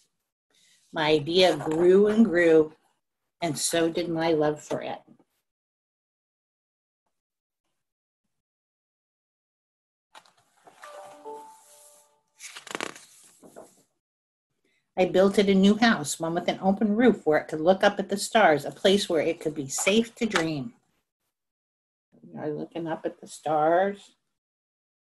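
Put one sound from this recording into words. An older woman reads aloud calmly over an online call.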